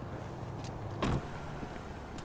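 A car door slams shut with a heavy thud.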